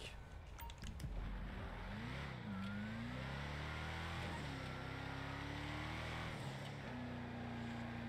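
A pickup truck's engine revs and climbs in pitch as it speeds up.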